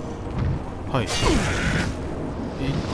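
A magic spell whooshes with a bright shimmer.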